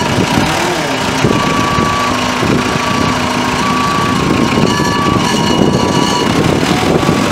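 A diesel engine rumbles steadily as a heavy machine drives slowly by.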